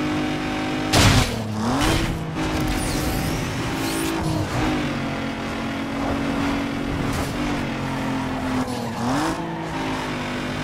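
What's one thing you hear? A car engine drops in pitch as gears shift, then climbs again.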